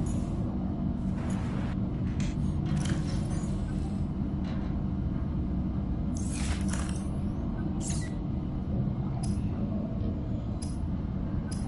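Short whooshing beeps sound as menus open and close.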